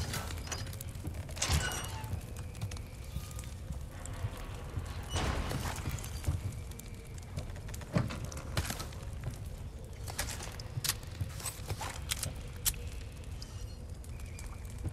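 Footsteps creak and thud on wooden floorboards.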